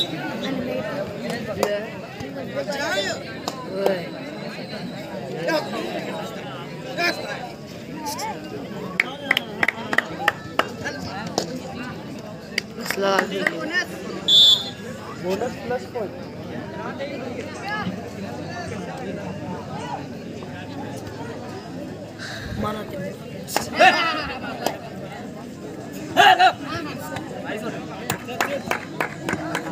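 A crowd of young men shouts and cheers outdoors.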